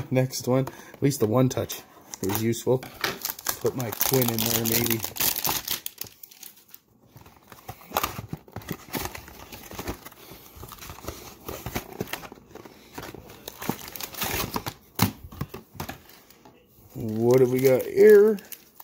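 Trading cards slide and rustle against each other.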